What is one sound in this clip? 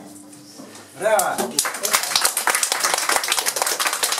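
A small group applauds loudly in a room.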